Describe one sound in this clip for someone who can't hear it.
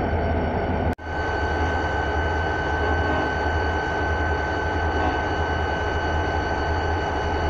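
A locomotive engine idles with a steady low hum.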